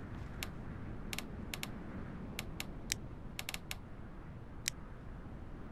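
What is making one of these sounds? Soft interface clicks tick several times.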